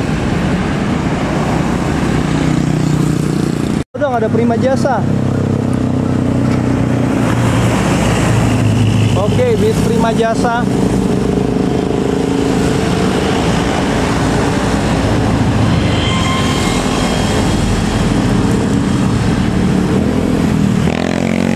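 Vehicles and motorbikes roar past close by on a road.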